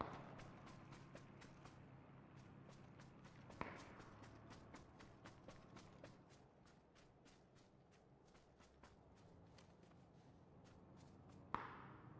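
Footsteps crunch through grass at a steady walking pace.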